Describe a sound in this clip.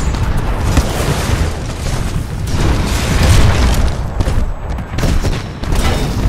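Explosions rumble and crash nearby.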